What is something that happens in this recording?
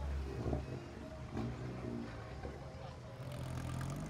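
A sports car engine revs loudly as the car pulls away.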